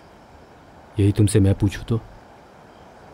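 An older man speaks firmly nearby.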